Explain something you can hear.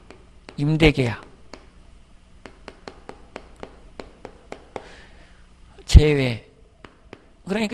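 A man speaks in short bursts through a microphone, close by.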